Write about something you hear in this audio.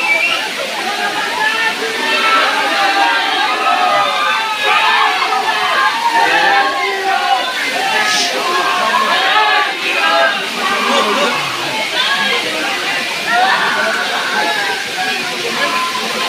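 A crowd of men, women and children chatters and calls out nearby, outdoors.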